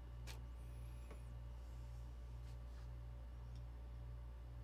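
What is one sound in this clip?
Small plastic parts click and snap under fingers.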